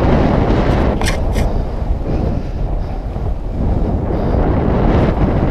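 Strong wind rushes and buffets loudly.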